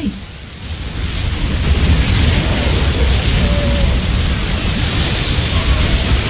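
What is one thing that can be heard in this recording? Gunfire and explosions rumble in a chaotic battle.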